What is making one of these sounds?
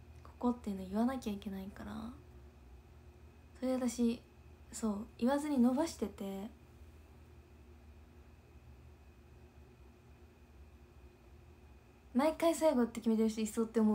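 A young woman speaks softly and hesitantly, close to a microphone.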